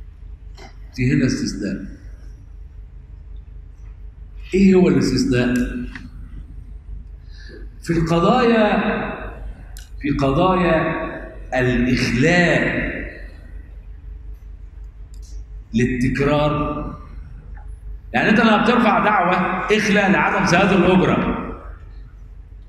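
A middle-aged man speaks calmly into a close microphone, with pauses between phrases.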